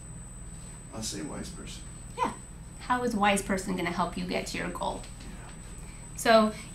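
A young woman speaks calmly to a room, heard through a microphone.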